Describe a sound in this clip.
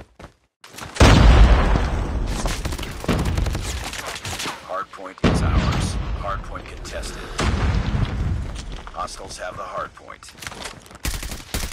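Gunfire from a rifle bursts loudly and rapidly.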